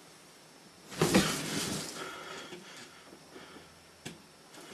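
Bedcovers rustle as a man sits up in bed.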